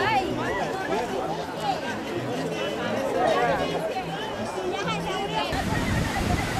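A crowd of men and children chatter and call out nearby.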